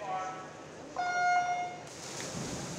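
An electronic starting beep sounds once in an echoing hall.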